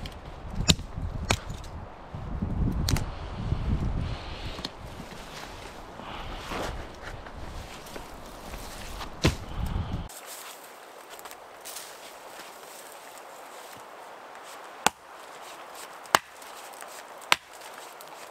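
An axe chops into a small tree trunk with sharp knocks.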